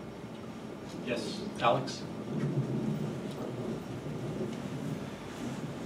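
An older man speaks calmly through a microphone in a room with a slight echo.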